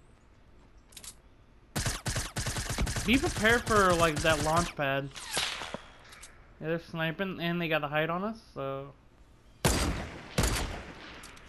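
A rifle fires with sharp, loud cracks.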